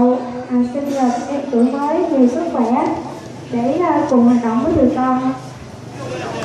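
A young woman sings through a microphone with a wavering voice.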